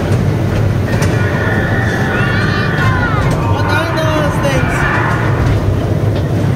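A young boy talks close by.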